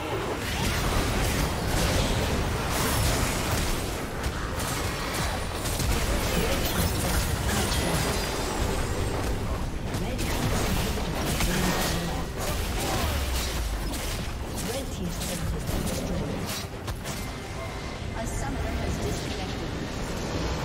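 Game spells and attacks crackle and blast in quick bursts.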